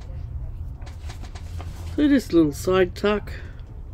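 Paper pages rustle and flap as they are turned.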